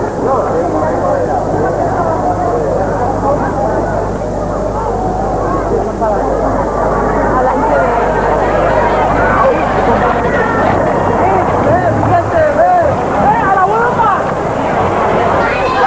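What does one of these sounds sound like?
A crowd of men and women chatters and calls out nearby.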